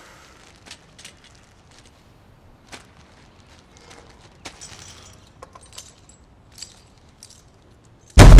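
Junk rattles and clatters as a boy rummages through a cart.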